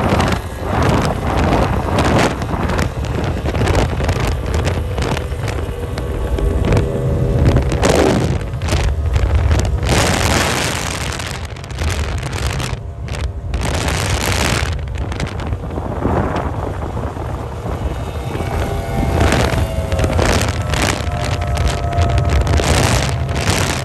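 Outboard engines of racing boats roar loudly as the boats speed past.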